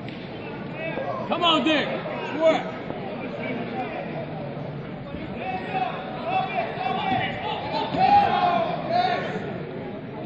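Men shout loudly from nearby.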